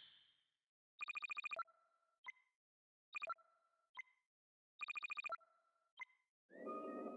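Quick electronic ticks and chimes sound as a game score counts up.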